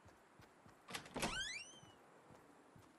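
A wooden door swings open with a creak.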